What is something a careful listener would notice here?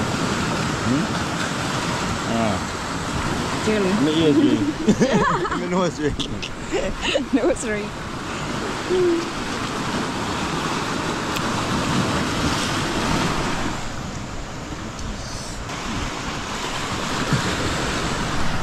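Waves wash against rocks nearby, with a steady rush of surf.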